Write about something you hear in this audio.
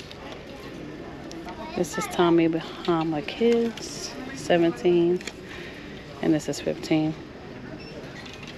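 Plastic hangers clack and scrape along a metal rail.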